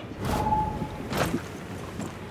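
A knife stabs into a body with a wet thud.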